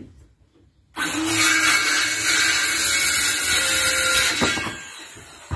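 A circular saw whines loudly as it cuts through wood.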